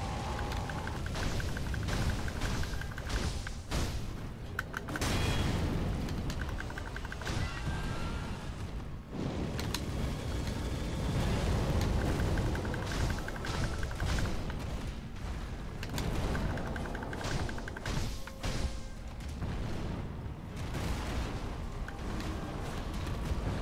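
A sword clashes and slashes repeatedly.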